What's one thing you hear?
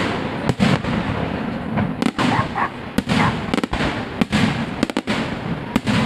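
Rockets whistle as they shoot upward.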